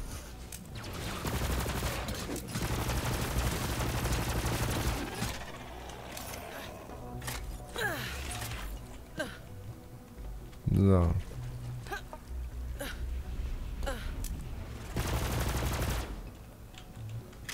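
A gun fires rapid bursts with loud blasts.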